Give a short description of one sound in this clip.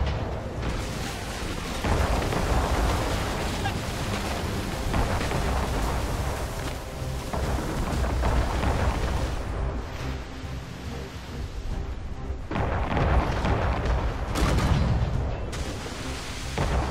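Waves splash and rush against a sailing ship's hull.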